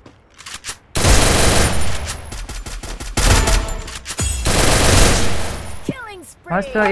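Rapid gunfire rattles loudly in quick bursts.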